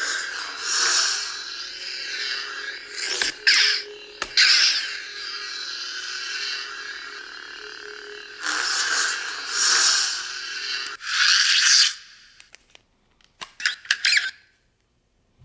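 A toy light sword hums and swooshes loudly as it is handled.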